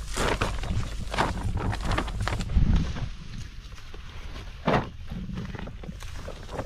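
Leaves rustle as a man picks from plants.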